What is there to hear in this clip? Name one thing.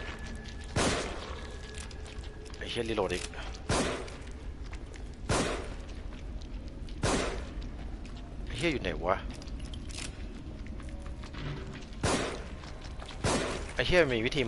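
Gunshots ring out sharply, one every second or two.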